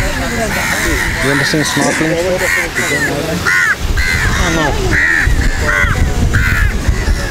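Crows caw repeatedly nearby.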